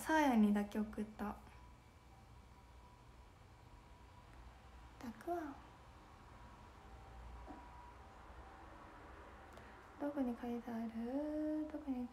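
A young woman speaks softly and close to a microphone, in short bursts.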